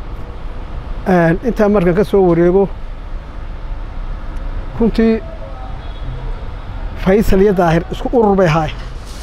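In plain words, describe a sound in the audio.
An elderly man speaks slowly and with feeling, in pauses, close to a microphone.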